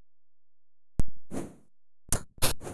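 Sharp digital sword strikes and hit sounds ring out from a retro video game.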